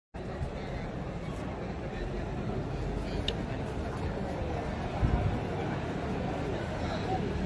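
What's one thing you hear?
Cloth flags flap in the wind.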